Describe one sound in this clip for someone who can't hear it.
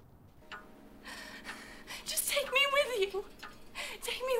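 A young woman speaks tearfully and pleadingly, close by.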